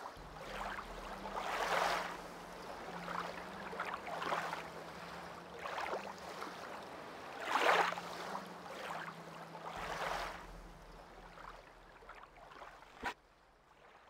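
Waves wash against a shore in slow swells.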